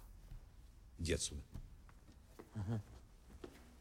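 An elderly man speaks in a low voice.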